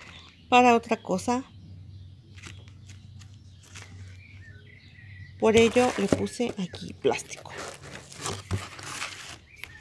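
Stiff cardboard scrapes and rustles as hands handle it.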